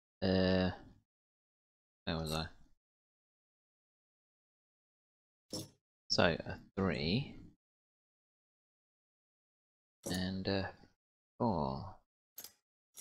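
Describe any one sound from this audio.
A man talks calmly in short bursts through a headset microphone.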